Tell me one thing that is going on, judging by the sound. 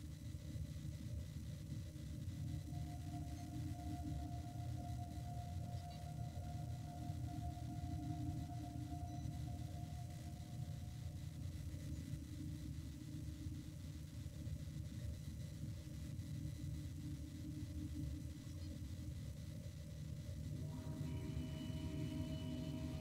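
A spaceship's engines hum low and steadily.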